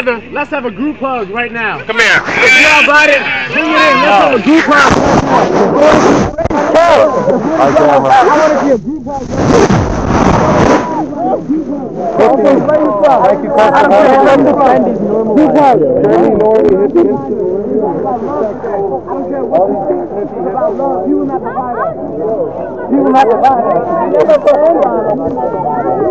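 A crowd of people talk and shout close by, outdoors.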